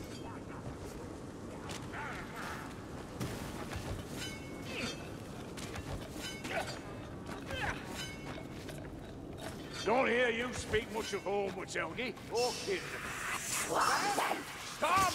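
Footsteps crunch steadily on stony ground.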